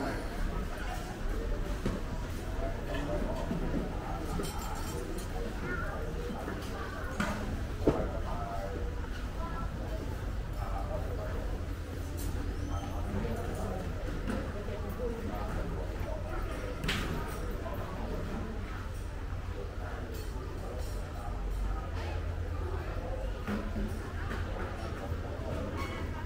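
People chatter at a distance in a lively murmur.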